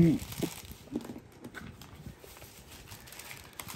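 Paper slides and rustles softly.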